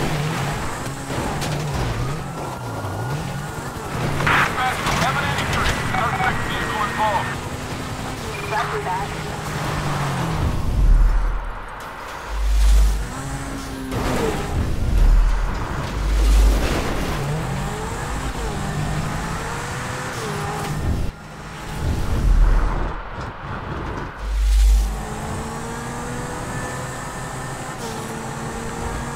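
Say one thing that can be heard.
A car engine revs and roars as it drives over rough ground.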